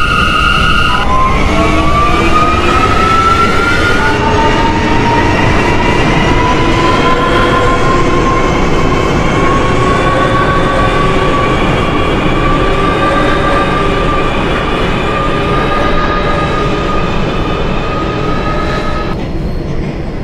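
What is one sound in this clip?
A subway train's electric motors whine, rising in pitch as it speeds up.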